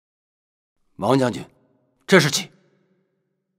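A man asks a question calmly.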